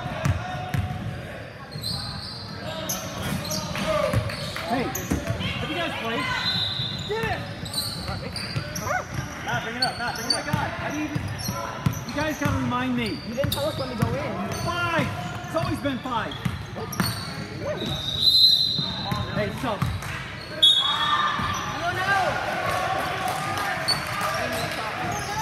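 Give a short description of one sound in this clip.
Young players and spectators call out and chatter in a large echoing gym.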